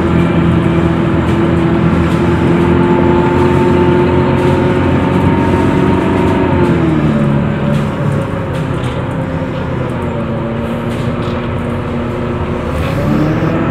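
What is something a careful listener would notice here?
A bus rumbles and rattles as it drives along.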